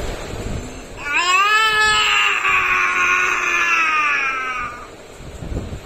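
A boy cries out loudly in pain, close by.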